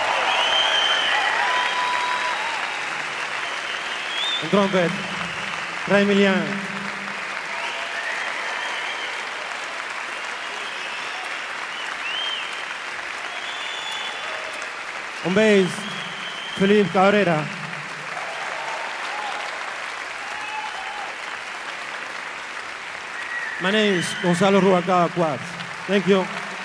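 An audience cheers and whistles.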